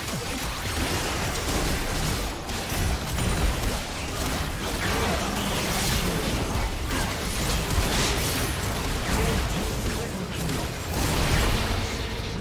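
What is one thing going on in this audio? Game spell effects crackle and burst in a hectic battle.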